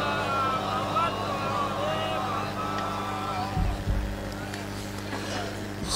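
A young man recites in a mournful, sung voice through a microphone and loudspeakers.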